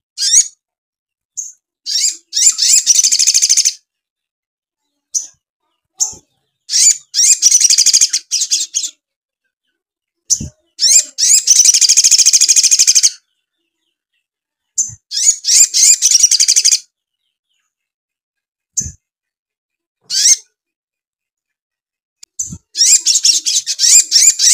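A small bird sings loud, rapid, high trilling bursts close by, with short silences between them.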